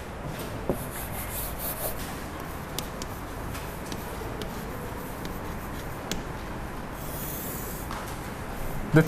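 Chalk taps and scratches on a blackboard.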